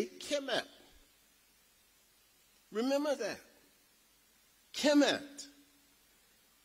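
A man speaks slowly in short phrases through a microphone in an echoing hall.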